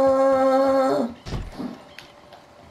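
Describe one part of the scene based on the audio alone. A fist knocks on a wooden door.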